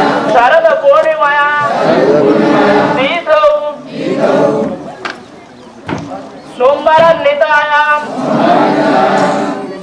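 A crowd of men and women sings a chant together in loud unison, outdoors.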